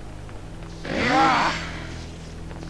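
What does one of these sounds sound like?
A metal weapon strikes something with a loud clang.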